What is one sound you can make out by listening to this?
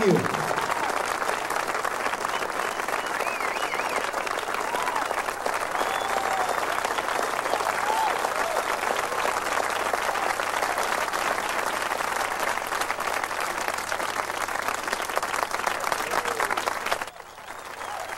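A live band plays music in a large room.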